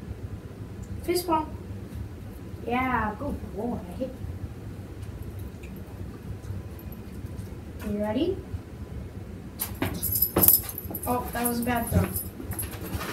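A boy gives short commands to a dog, close by.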